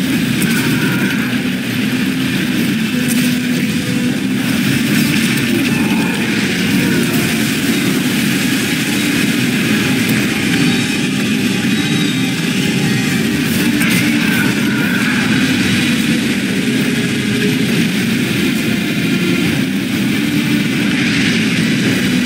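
Water splashes up in loud bursts.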